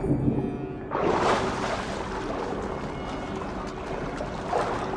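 Water splashes as a swimmer breaks the surface.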